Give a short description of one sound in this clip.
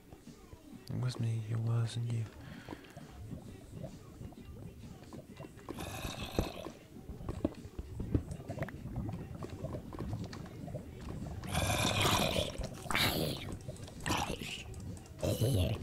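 Lava bubbles and pops.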